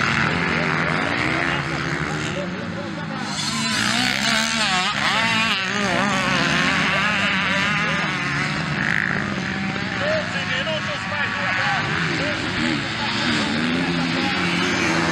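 Motocross bike engines rev up and down.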